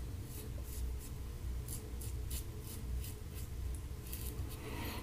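A razor scrapes over stubble in short strokes.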